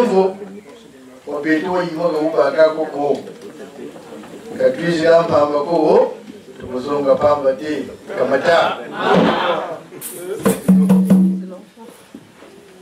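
A man speaks with animation into a microphone over loudspeakers in an echoing room.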